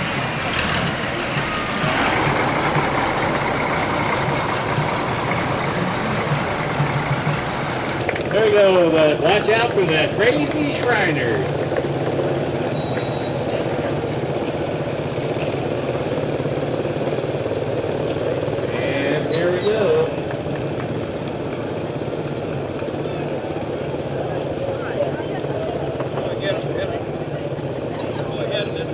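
A crowd murmurs along the street outdoors.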